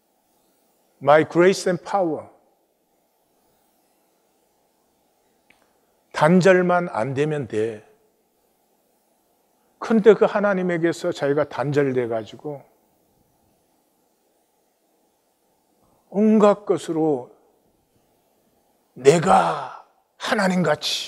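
An elderly man speaks calmly and earnestly into a microphone, with long pauses.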